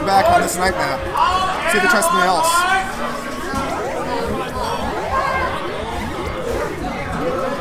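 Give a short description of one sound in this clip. Electronic video game sound effects bleep and chirp.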